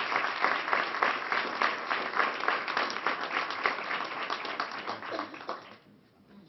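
A crowd applauds loudly in a large room, then the clapping dies away.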